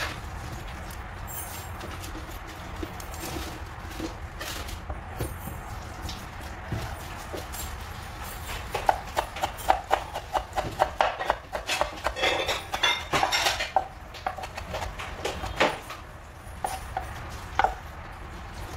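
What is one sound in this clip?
A knife chops herbs on a wooden board with quick, rapid taps.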